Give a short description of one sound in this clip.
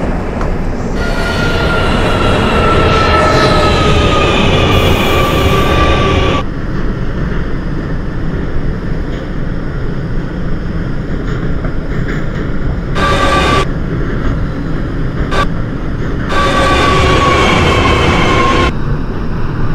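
An electric train motor whines, its pitch falling as the train slows.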